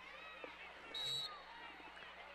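A referee's whistle blows briefly in the distance.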